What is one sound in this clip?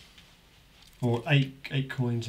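A man speaks louder and with animation into a microphone.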